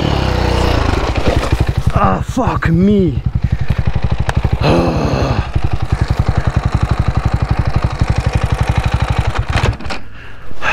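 A motorbike engine idles with a steady low putter, then cuts out.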